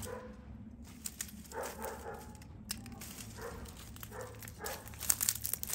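Dry vines and leaves rustle as they are handled.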